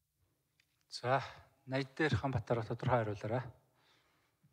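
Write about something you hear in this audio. A younger man speaks calmly into a microphone.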